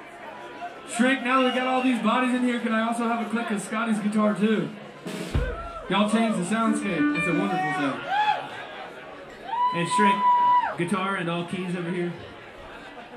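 A man speaks into a microphone over a loudspeaker.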